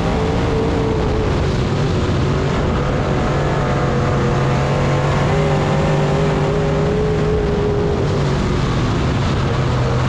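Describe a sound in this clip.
A race car engine roars loudly up close, its pitch rising and falling.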